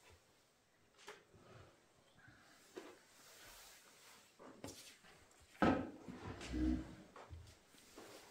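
A robe rustles as a man gets up and moves about.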